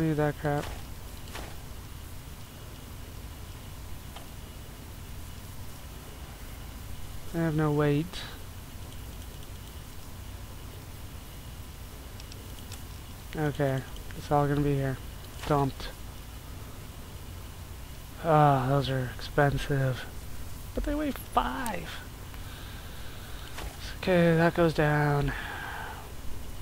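Soft menu clicks tick as a selection moves through a list.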